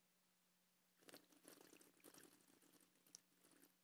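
A man sips a drink with quiet slurping.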